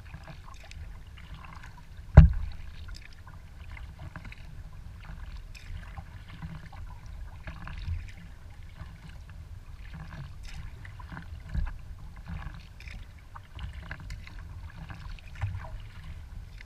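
A paddle dips and splashes in the water in a steady rhythm.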